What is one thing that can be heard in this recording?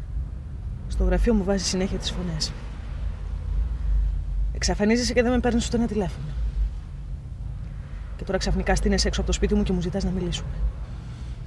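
A young woman speaks inside a car.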